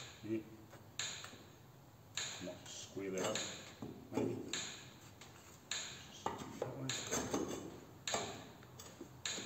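Sheet metal clanks and rattles sharply at a steady pace.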